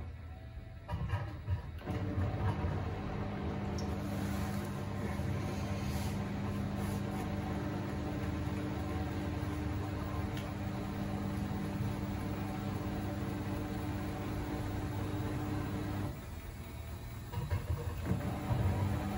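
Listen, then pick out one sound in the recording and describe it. Water and laundry slosh inside a washing machine.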